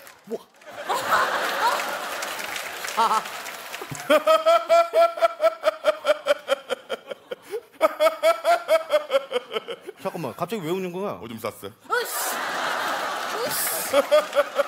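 An audience laughs and claps loudly.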